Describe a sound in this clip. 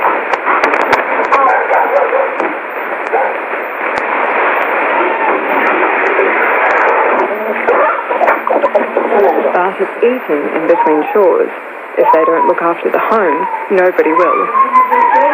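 A radio hisses with thick static through a small loudspeaker.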